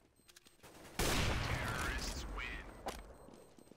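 A sniper rifle fires a single loud, booming shot.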